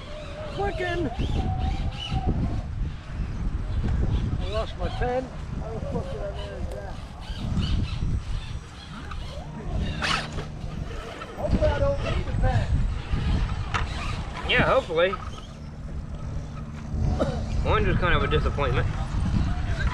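Plastic tyres scrape and crunch on rock.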